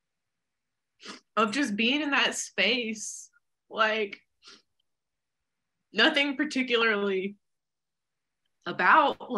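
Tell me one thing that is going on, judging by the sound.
A woman speaks calmly nearby, in short bursts with pauses.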